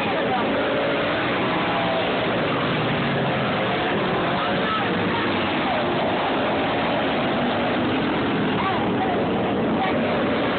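Small racing kart engines buzz and whine around a dirt track.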